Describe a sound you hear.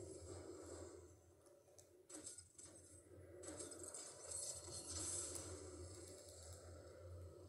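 Video game sounds play from a television speaker.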